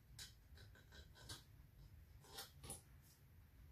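Small metal parts click and tap as a lantern is handled.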